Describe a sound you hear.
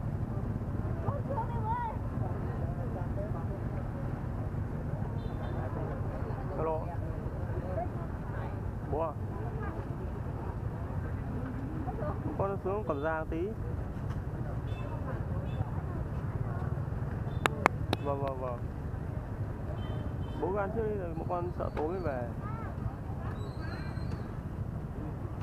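A crowd of men and women chatter and call out nearby, outdoors.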